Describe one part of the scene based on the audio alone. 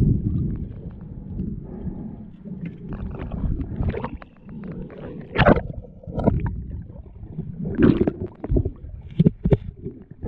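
Water gurgles and rumbles around an underwater microphone.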